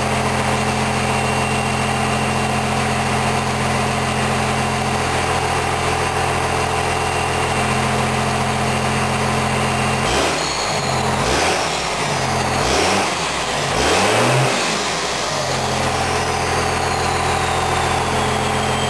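A Cummins diesel pickup idles through a straight-pipe exhaust stack.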